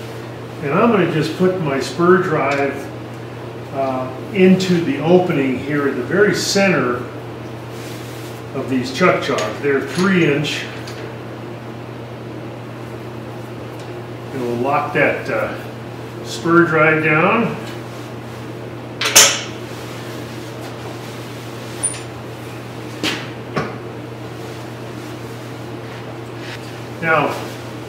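A man talks calmly and explains, close to a microphone.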